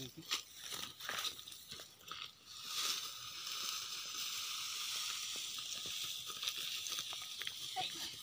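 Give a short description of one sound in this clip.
Footsteps crunch over dry stubble.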